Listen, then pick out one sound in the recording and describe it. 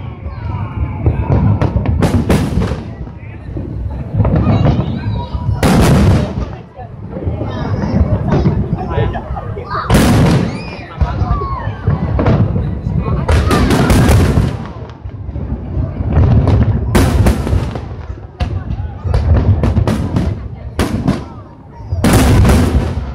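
Fireworks burst with loud booms and crackles, echoing across open water.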